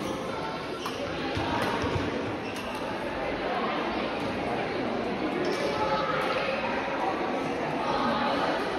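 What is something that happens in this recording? Shoes squeak on the court floor.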